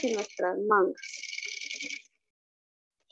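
A sewing machine whirs steadily.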